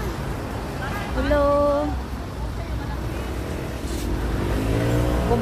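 People chatter in the background outdoors.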